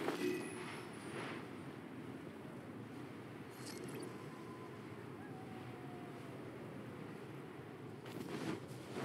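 Wind rushes steadily past a gliding game character.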